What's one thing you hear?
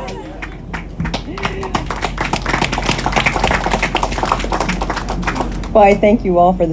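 A crowd claps and applauds.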